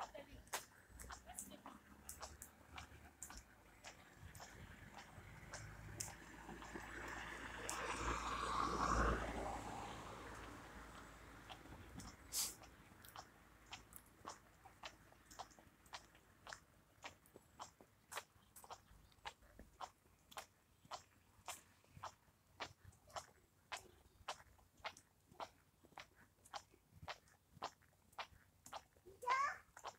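Footsteps tap steadily on pavement.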